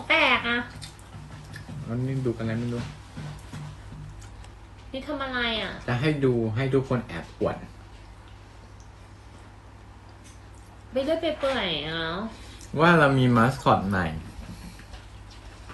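A young woman sings softly close by, in short phrases.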